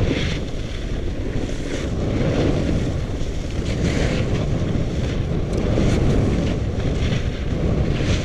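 A snowboard scrapes and hisses over packed snow.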